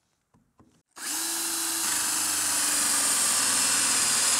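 A power drill whirs steadily as it bores into wood.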